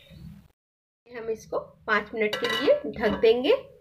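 A metal lid clinks onto a pan.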